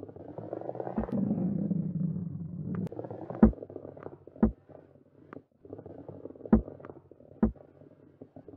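Wooden balls knock against each other with sharp clacks.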